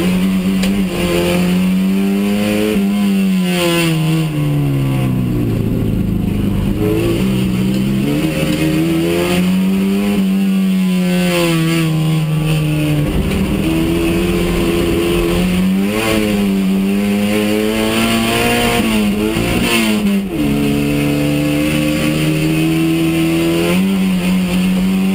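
A race car engine roars loudly from inside the cabin, revving up and down through the gears.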